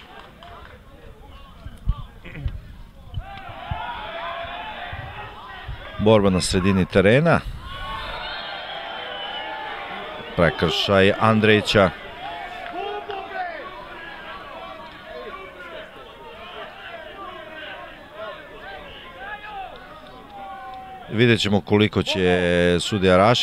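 A crowd of spectators murmurs and calls out outdoors.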